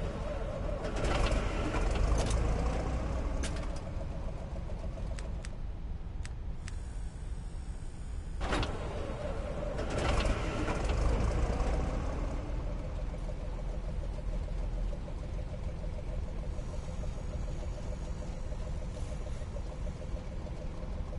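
A tank engine idles with a low, steady rumble.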